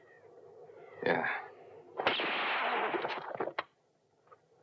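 A gunshot bangs outdoors.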